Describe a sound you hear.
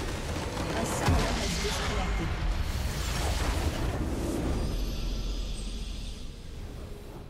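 A large structure explodes with a deep rumbling boom.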